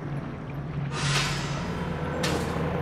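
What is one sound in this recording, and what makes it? A magical shimmer sparkles briefly.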